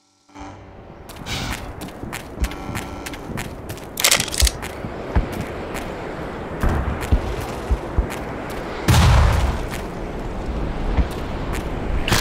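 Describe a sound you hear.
Footsteps crunch on dry, gravelly ground.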